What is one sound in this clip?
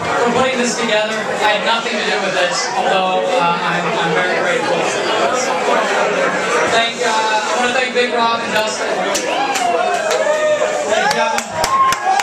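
A young man speaks rapidly and loudly through a microphone.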